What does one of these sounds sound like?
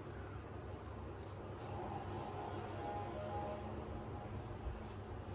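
A razor scrapes through stubble in short, repeated strokes close by.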